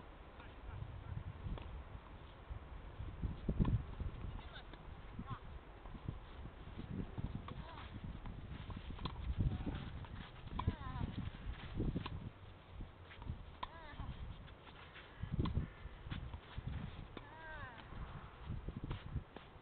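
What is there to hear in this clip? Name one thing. A tennis racket hits a ball with sharp pops, again and again.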